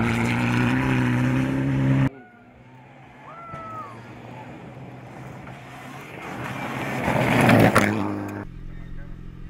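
A rally car engine roars at speed and passes by.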